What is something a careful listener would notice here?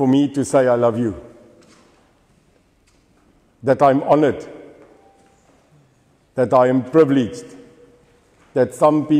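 A middle-aged man speaks calmly in short bursts with pauses, close by, in a room with a slight echo.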